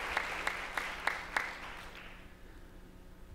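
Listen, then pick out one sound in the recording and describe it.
Applause from an audience dies away.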